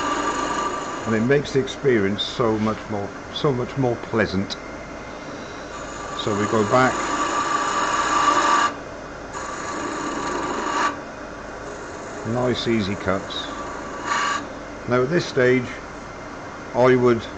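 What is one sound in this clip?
A wood lathe motor hums steadily.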